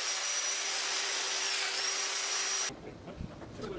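A biscuit joiner whines as it cuts into a wood panel.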